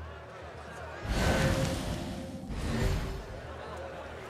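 A loud rushing whoosh sweeps past twice.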